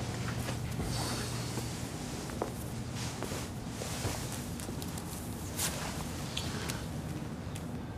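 Fabric rustles as hands search through a jacket.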